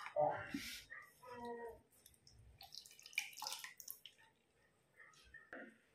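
Liquid pours into a metal jar.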